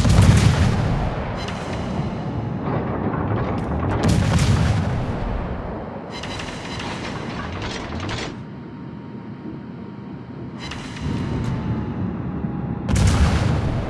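Anti-aircraft guns rattle in rapid bursts.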